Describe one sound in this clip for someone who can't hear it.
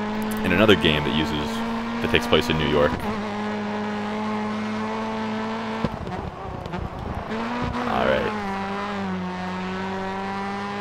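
A racing car engine roars at high revs, dropping and rising in pitch with gear changes.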